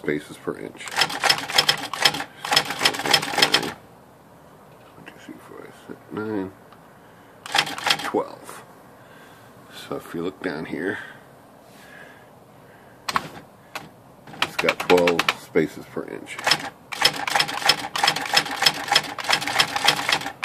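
A dot matrix printer head buzzes rapidly as it prints in bursts.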